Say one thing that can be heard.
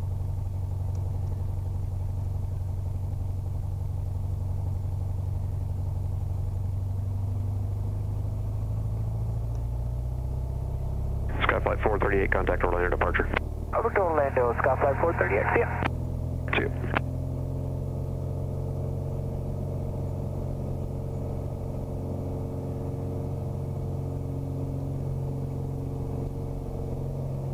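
A light aircraft's propeller engine drones steadily up close.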